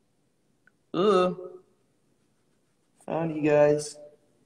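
A young man speaks briefly and quietly, close to a microphone.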